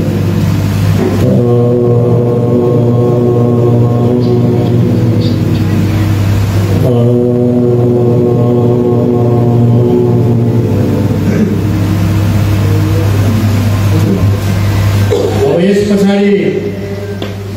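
A man sings through a loudspeaker in a large echoing hall.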